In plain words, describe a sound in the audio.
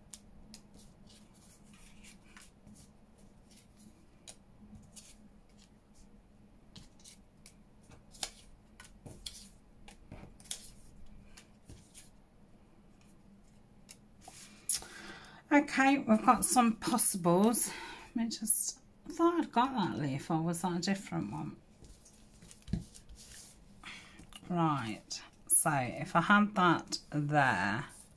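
Paper pieces rustle and tap softly on a mat.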